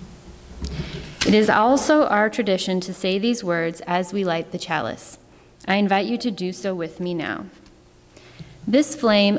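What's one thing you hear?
A young woman reads aloud calmly into a microphone in a reverberant hall.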